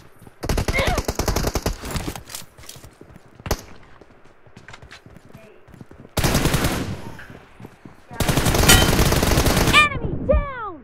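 An automatic rifle fires rapid bursts of loud shots.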